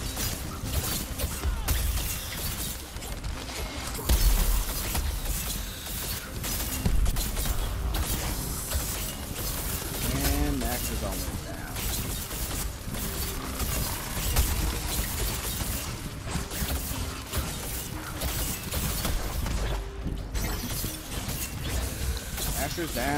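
Weapons clash and slash against a huge beast again and again.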